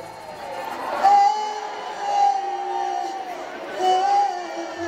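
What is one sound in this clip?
A woman sings into a microphone over a loudspeaker, echoing in a large hall.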